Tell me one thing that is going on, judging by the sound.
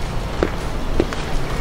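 A ball slaps into a player's hands.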